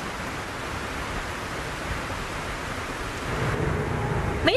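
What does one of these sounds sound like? Rain falls steadily outdoors.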